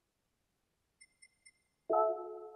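Menu beeps sound softly.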